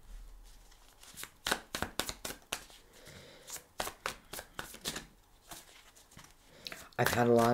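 Playing cards are shuffled and snapped together with quick crisp flicks.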